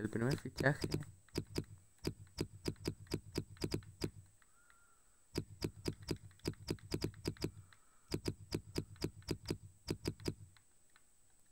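Short menu clicks tick quickly, one after another.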